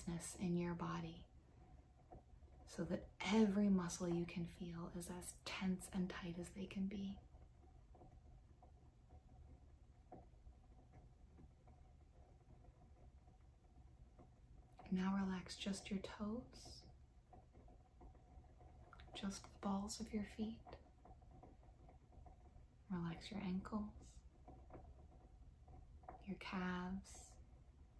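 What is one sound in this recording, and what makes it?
A young woman speaks calmly and close up, with long pauses.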